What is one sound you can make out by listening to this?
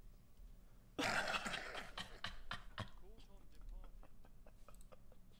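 A young man laughs loudly into a microphone.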